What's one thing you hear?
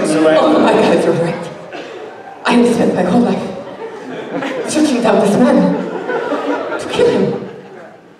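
A woman laughs and talks into a microphone.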